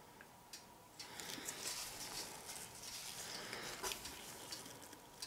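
A canvas peels away from wet paint with a sticky, crackling squelch.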